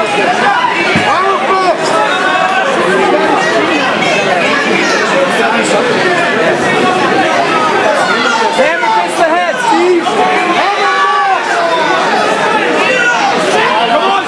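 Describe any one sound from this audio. A crowd shouts and cheers loudly throughout.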